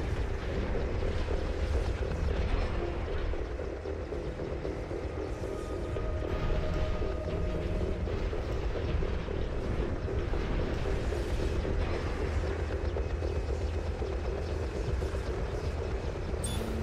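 A large machine's engines hum and rumble steadily.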